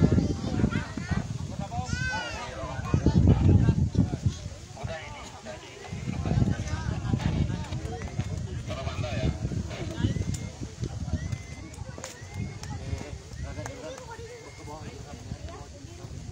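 A crowd of men and women talk and call out nearby.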